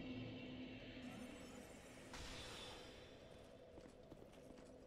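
A magic spell hums and chimes as it is cast.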